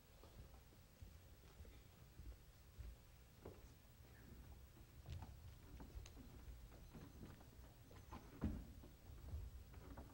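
Footsteps shuffle softly across a wooden stage.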